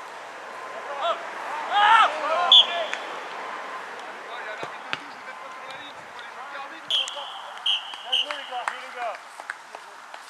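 Men shout to each other across an open outdoor pitch.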